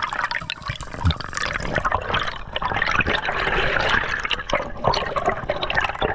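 Air bubbles gurgle and pop underwater.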